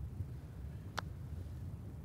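A golf putter taps a ball softly.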